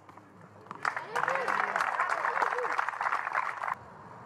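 A tennis ball is struck with a racket and bounces on a hard court.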